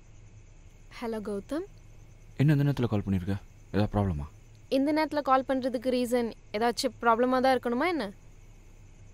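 A young woman speaks into a phone, sounding upset.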